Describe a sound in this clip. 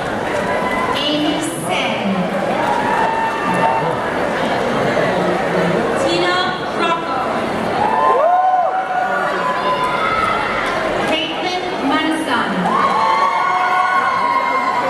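A crowd of people chatters loudly throughout.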